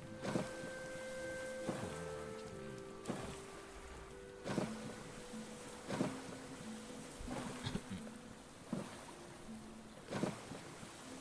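Waves slosh and splash against a small raft on open water.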